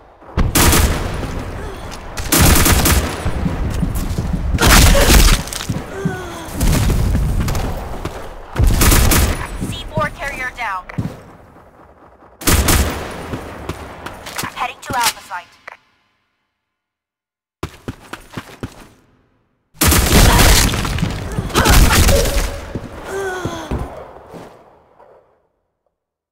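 Gunfire rattles in rapid bursts with echoing tails.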